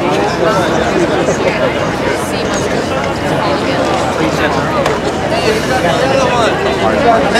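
A crowd of men and women chatters loudly all around.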